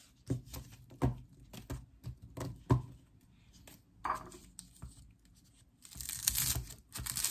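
Stiff stalks rustle and knock against a hard counter.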